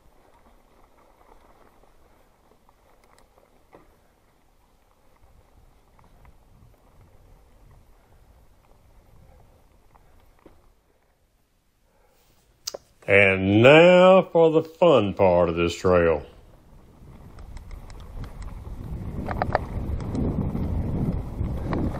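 Bicycle tyres roll and crunch over a dirt trail, growing louder as the bike speeds downhill.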